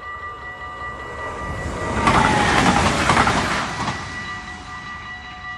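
A train rushes past close by with a loud roar, then fades.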